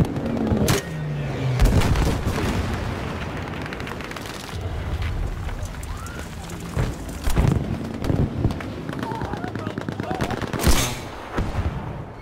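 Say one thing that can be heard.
Gunfire cracks and booms in short bursts.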